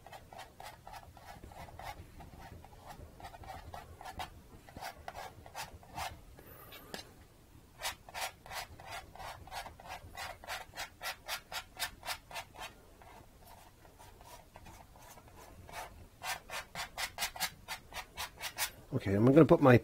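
A painting knife scrapes and taps rhythmically on a canvas.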